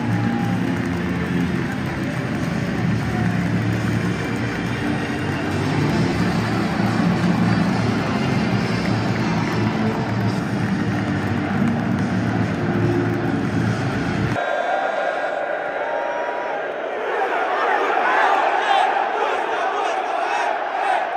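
A large crowd chants and sings loudly in an open stadium.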